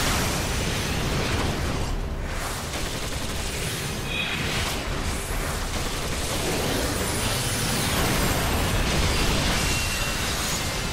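Magic spells whoosh and crackle during a fantasy battle.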